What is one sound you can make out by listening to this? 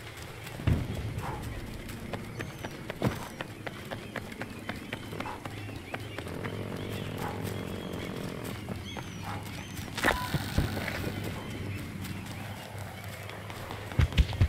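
Footsteps crunch over rocks and grass.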